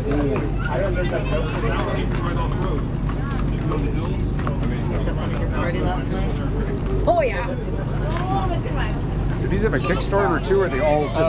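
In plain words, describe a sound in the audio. A crowd of adults and children chatters outdoors nearby.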